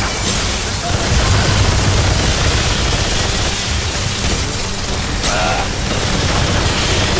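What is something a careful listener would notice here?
A flamethrower roars with a loud rush of fire.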